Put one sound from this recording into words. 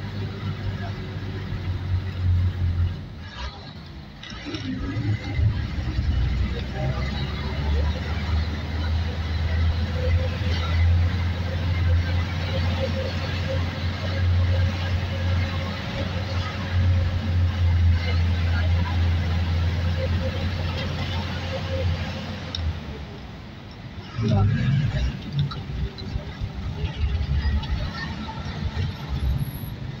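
Wind rushes past an open window.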